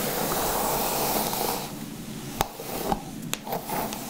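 Hands stroke and rustle through hair up close.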